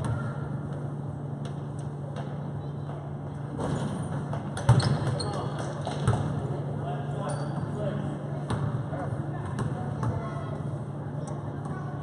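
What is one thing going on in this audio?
A crowd of spectators murmurs and cheers in a large echoing gym.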